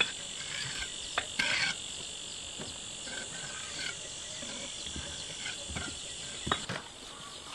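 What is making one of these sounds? Bricks clack and knock as they are stacked.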